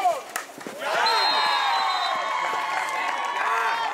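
Young men shout and cheer outdoors.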